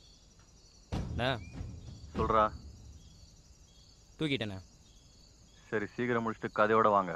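A man speaks into a phone, close and tense.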